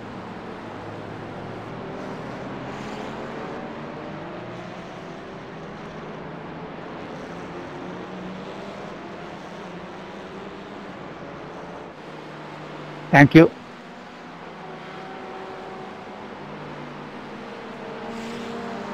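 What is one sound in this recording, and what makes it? Racing car engines roar and whine as they shift through gears.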